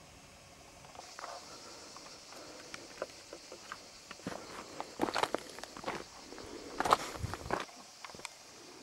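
Footsteps crunch on a loose gravel path.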